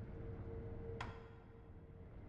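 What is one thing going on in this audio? A short bright menu chime rings once.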